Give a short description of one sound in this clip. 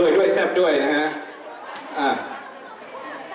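A young man speaks into a microphone over loudspeakers.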